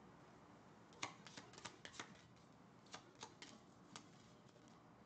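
Playing cards riffle and slap softly as they are shuffled.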